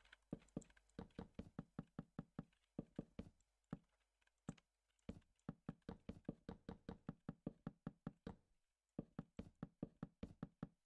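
Wooden blocks are set down one after another with quick, dull knocks.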